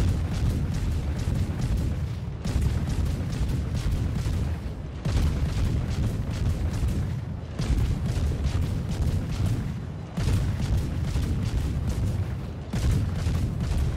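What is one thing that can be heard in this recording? Naval guns fire in heavy, booming salvos.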